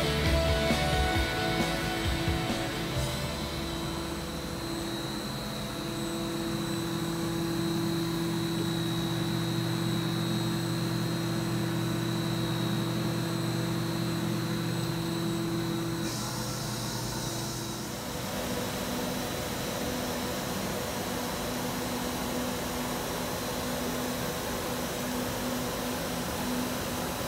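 An electrical machine hums steadily.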